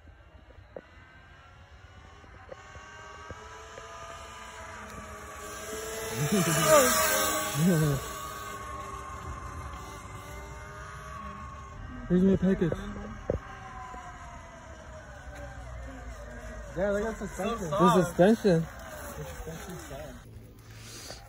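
An electric motorbike whines as it rides past, its pitch rising and falling.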